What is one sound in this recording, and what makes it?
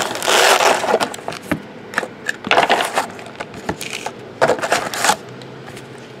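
Card packs tap softly as they are stacked on a table.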